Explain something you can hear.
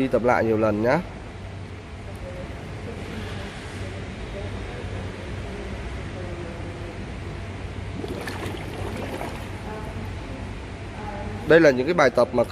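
Water bubbles gently as swimmers breathe out underwater.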